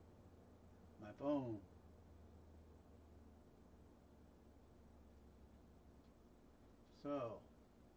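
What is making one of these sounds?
A middle-aged man says a few short words close by.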